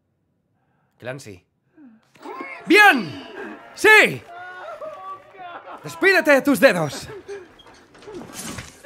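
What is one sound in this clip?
A young man talks and exclaims with animation, close to a microphone.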